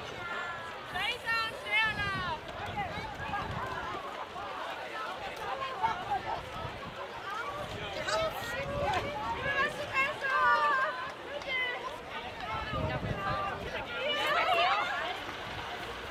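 Women shout and shriek excitedly nearby.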